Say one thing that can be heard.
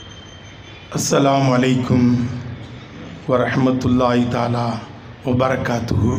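A man speaks forcefully into a microphone over loudspeakers outdoors.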